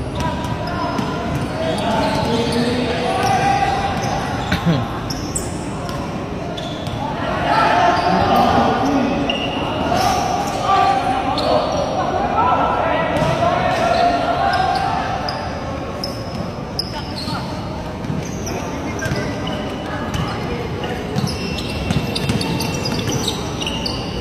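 A crowd chatters and cheers nearby.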